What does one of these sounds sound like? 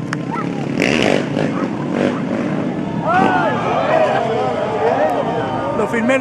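Motorcycle engines roar and rev up and down.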